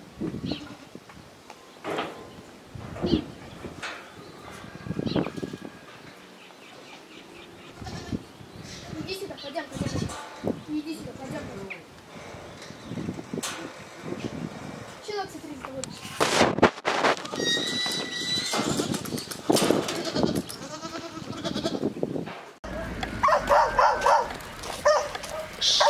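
Goats bleat loudly and often, close by.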